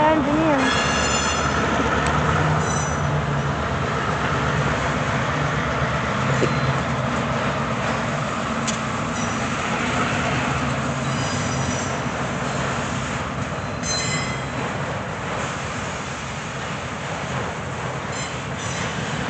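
A freight train rumbles steadily past nearby.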